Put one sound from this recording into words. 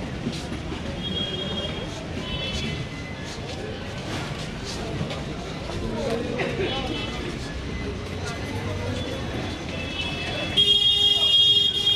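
Vehicle horns honk repeatedly nearby.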